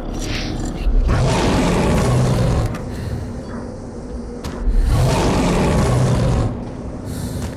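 A rapid-fire gun roars in long bursts.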